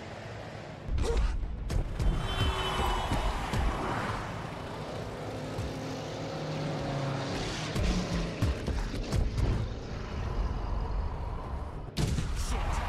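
Car engines hum as cars drive past on a street.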